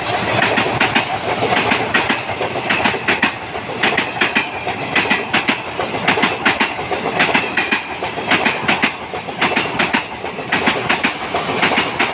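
A passenger train rumbles past close by at speed.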